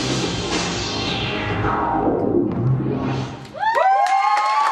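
Music plays for a dance performance.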